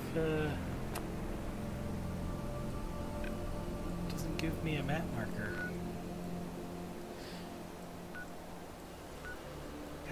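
A handheld device beeps and clicks softly.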